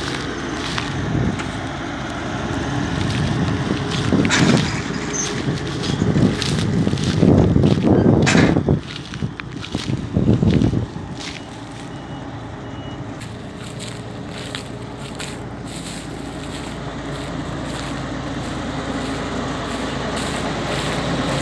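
A combine harvester's engine rumbles steadily close by.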